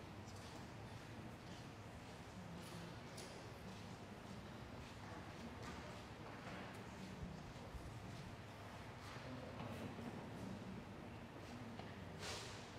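A congregation murmurs and shifts quietly in a large echoing hall.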